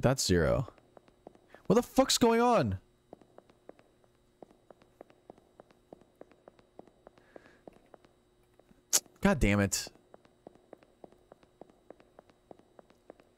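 Footsteps tap quickly and steadily on a hard tiled floor.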